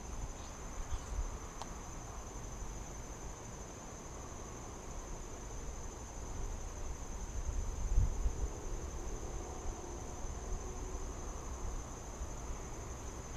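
Wooden hive frames knock and scrape.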